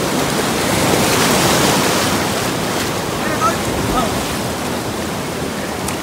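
River rapids rush and roar loudly.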